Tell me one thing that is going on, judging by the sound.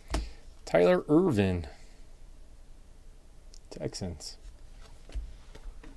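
Trading cards slide and rustle between hands close by.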